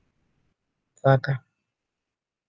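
A man says a few words briefly through an online call.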